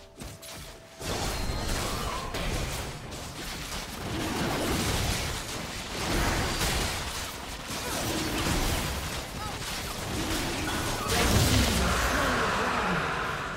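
Magic blasts crackle and boom in a hectic fight.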